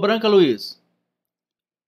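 A man speaks briefly and loudly into a microphone.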